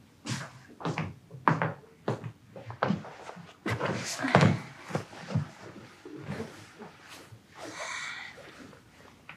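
A young woman's feet thump on the floor as she dances.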